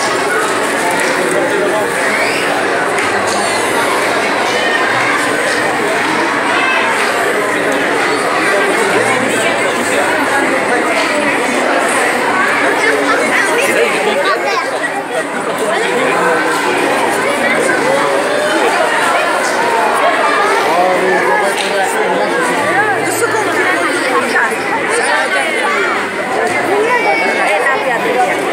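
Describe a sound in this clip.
A crowd of men, women and children chatters loudly all around outdoors.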